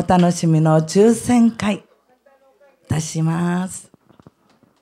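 A woman sings loudly into a microphone, heard through loudspeakers.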